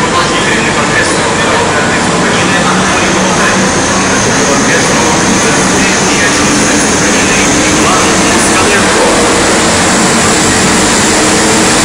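Heavy tracked vehicles rumble past with loud, steady droning engines.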